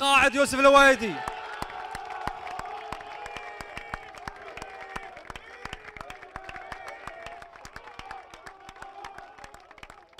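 A group of men clap their hands.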